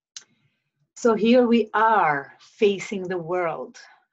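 A woman speaks calmly and expressively close to the microphone.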